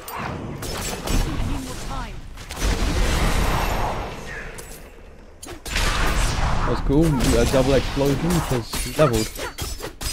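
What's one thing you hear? A whooshing spell swirls around with a rushing roar.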